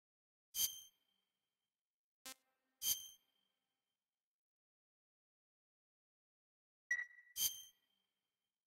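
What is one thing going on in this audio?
Short bright electronic menu chimes ring out several times.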